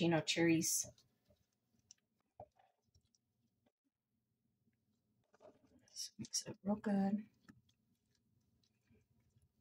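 A spoon stirs a fluffy mixture in a bowl.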